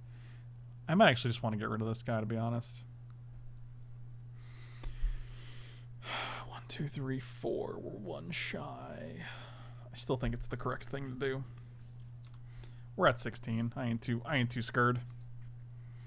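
A man talks calmly and close to a microphone, in short bursts.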